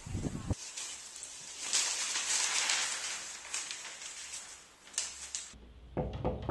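Paper rustles as a newspaper is handled.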